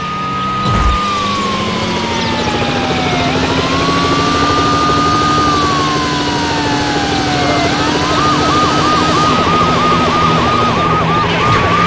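A car engine roars steadily at speed.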